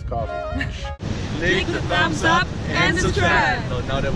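A young group talks and laughs together, outdoors.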